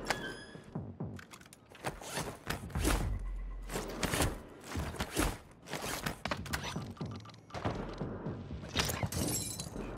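Footsteps thump on a wooden floor.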